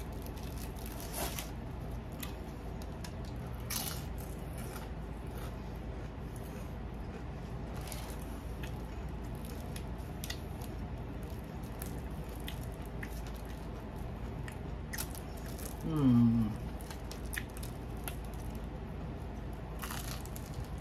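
A woman chews and crunches food close by.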